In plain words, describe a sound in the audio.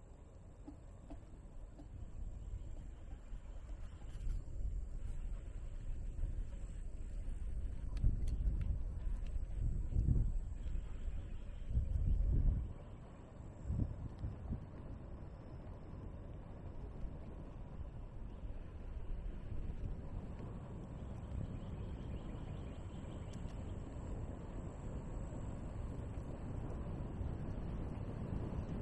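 Tyres roll steadily on a paved path.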